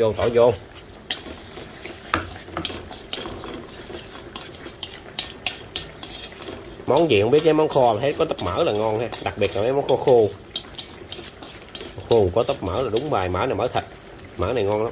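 Chopsticks scrape and tap against a metal wok.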